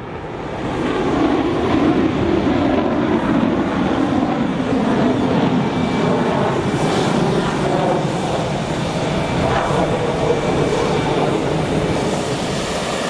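A jet engine roars steadily as a fighter plane taxis nearby.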